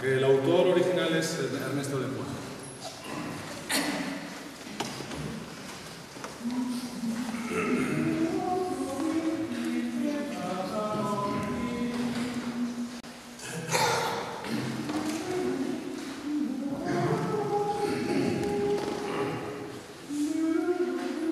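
A mixed choir of men and women sings together in a large echoing hall.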